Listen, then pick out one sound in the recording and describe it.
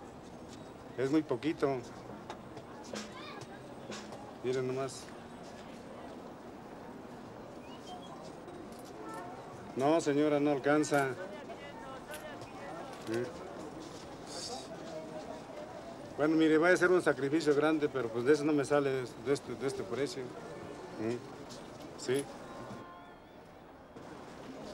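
Paper money rustles between hands.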